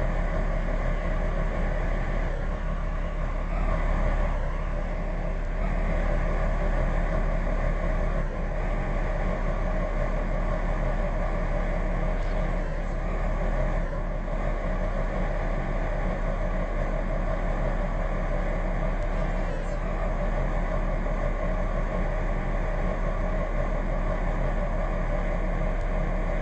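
A diesel train engine rumbles steadily nearby.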